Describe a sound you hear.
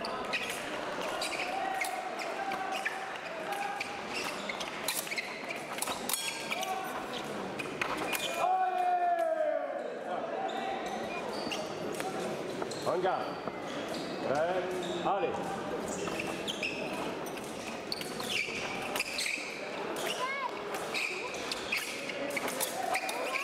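Steel blades click and clash together.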